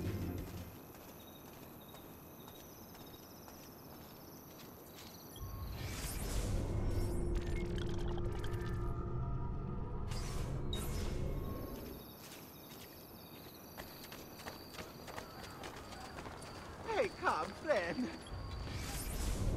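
Footsteps tap on stone pavement.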